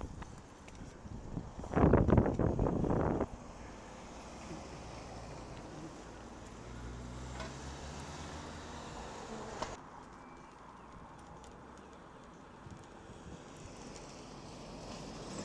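Bicycle tyres hum on the road surface.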